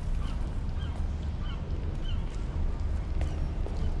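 Footsteps crunch on debris.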